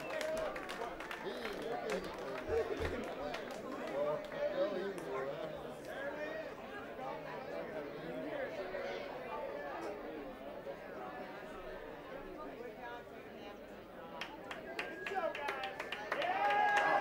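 A crowd of adults chatters.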